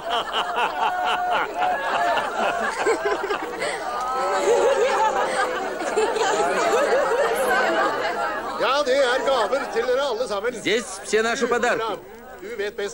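A crowd of men and women laughs and cheers loudly.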